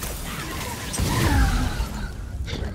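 A fiery explosion bursts with a deep boom.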